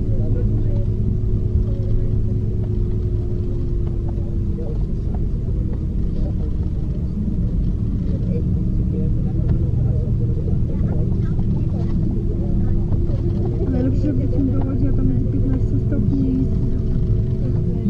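A train hums and rumbles steadily from inside a carriage.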